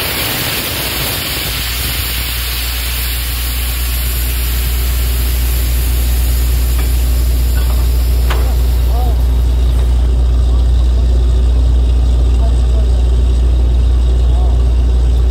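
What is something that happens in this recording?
A drilling rig's engine rumbles loudly and steadily.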